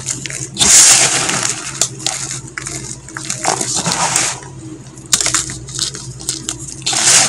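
Chalk fragments patter and clatter as they fall onto a pile.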